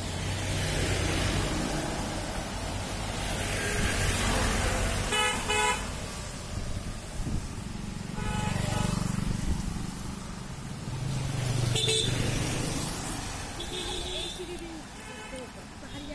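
Car engines hum as vehicles drive past on a road.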